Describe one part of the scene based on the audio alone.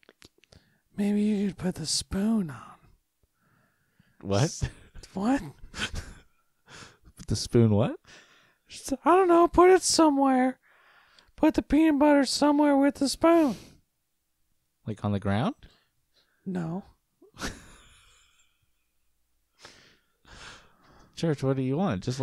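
A second man talks and laughs close to a microphone.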